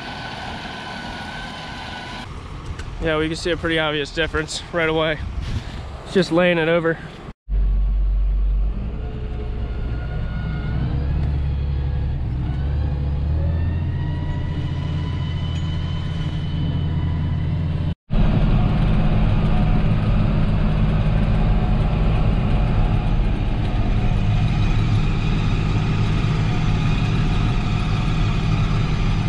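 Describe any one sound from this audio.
A mower chops and thrashes through tall stalks.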